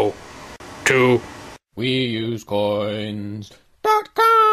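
A man speaks close up with exaggerated, animated vocal sounds.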